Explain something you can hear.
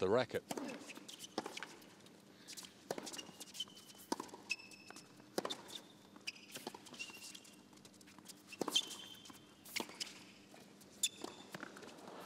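A tennis ball is struck back and forth with sharp pops.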